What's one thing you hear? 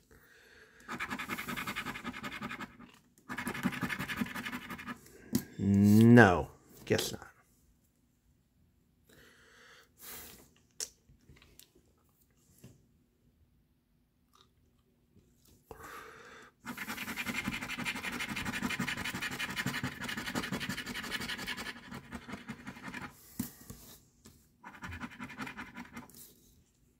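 A coin scratches rapidly across a lottery ticket.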